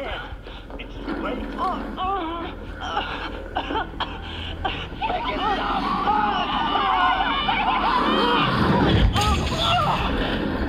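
A man shouts in panic through a loudspeaker.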